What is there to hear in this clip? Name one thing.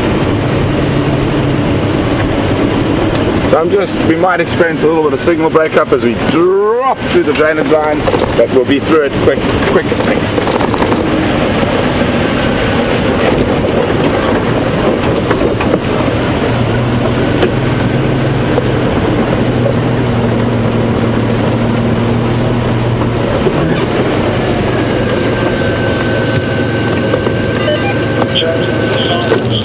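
An engine rumbles steadily as a vehicle drives along.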